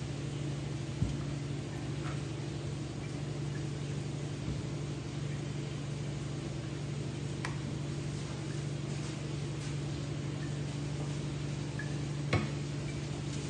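Dishes clink now and then.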